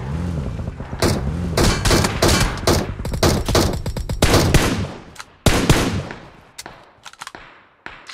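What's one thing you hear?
Rapid gunfire rings out in bursts.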